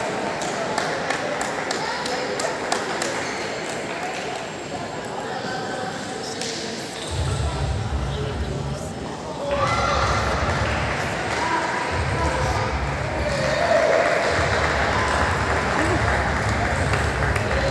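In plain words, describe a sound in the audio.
Table tennis balls click sharply on tables and paddles.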